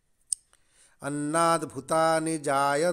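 A man sings in long, held notes close to a microphone.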